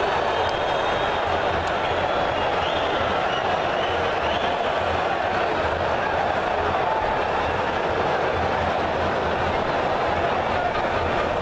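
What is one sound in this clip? A large stadium crowd roars and chants steadily in the open air.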